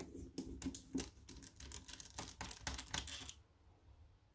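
A small screwdriver squeaks and scrapes as it turns a screw close by.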